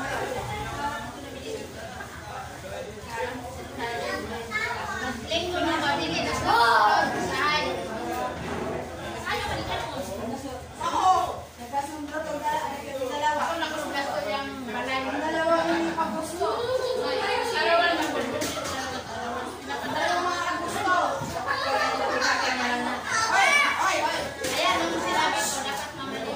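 Several women and children talk and chatter at once nearby.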